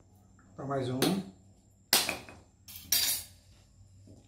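A knife chops into a woody stem with sharp knocks.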